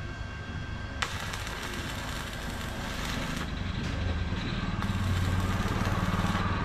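An electric welder crackles and hisses in short bursts.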